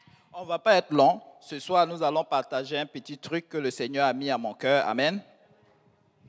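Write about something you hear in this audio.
A man speaks clearly and calmly in a room with some echo.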